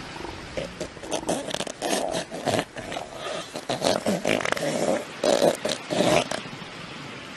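A young elephant seal bellows and groans in hoarse bursts.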